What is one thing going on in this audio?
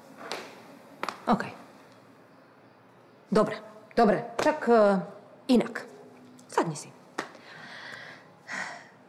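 A woman speaks with animation nearby.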